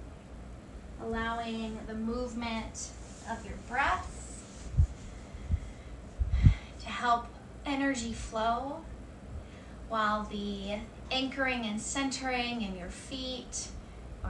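A woman speaks calmly and gently, close to a microphone.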